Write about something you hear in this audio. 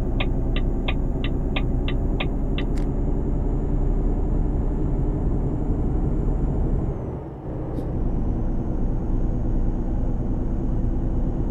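A truck engine drones steadily at speed.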